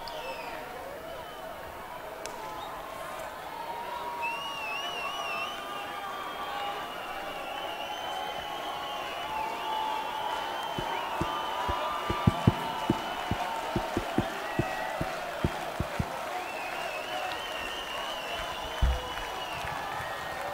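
Live band music plays from a distant outdoor stage.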